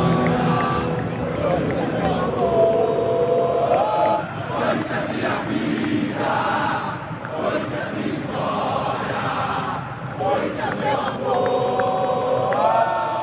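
A huge stadium crowd sings and chants loudly together.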